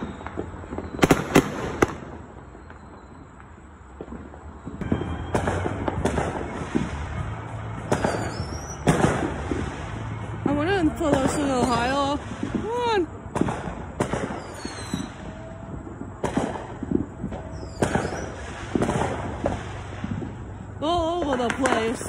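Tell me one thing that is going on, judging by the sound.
Fireworks bang and crackle repeatedly outdoors.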